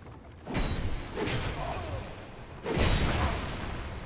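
A sword clangs against metal.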